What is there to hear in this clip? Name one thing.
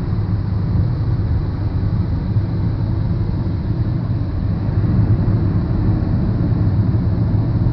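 A car drives fast along a highway with a steady low road rumble heard from inside.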